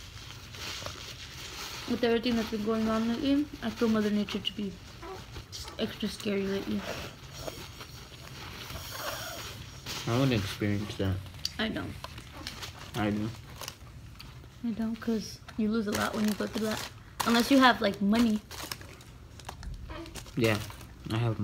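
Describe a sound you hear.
Paper wrappers rustle and crinkle.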